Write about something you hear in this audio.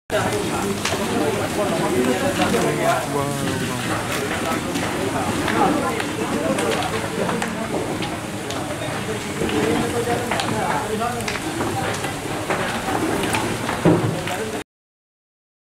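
A crowd of men and women talk and call out excitedly outdoors.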